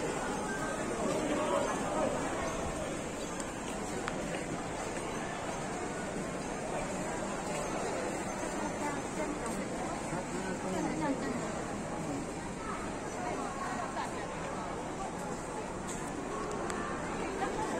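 A crowd of people chatters nearby in the open air.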